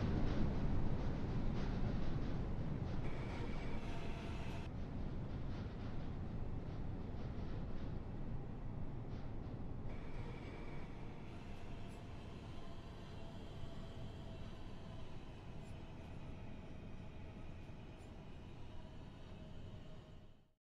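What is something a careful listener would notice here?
A train rumbles along the tracks in a tunnel and slowly fades into the distance.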